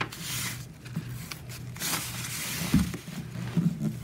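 A plastic tool scrapes along a paper fold.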